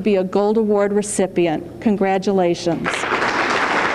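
A woman speaks into a microphone over loudspeakers in an echoing hall.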